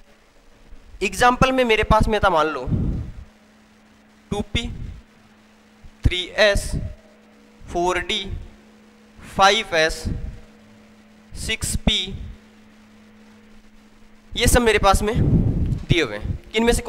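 A young man speaks calmly into a headset microphone, in short bursts with pauses.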